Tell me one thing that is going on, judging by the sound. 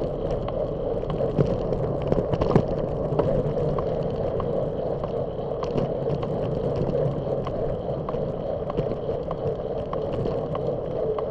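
Wind rumbles steadily past a moving bicycle outdoors.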